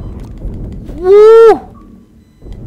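A creature lets out a shrill screech.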